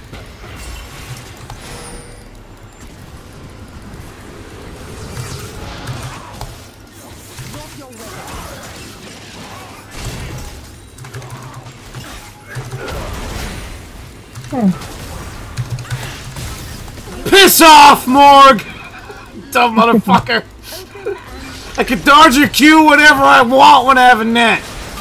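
Game sound effects of spells and hits play.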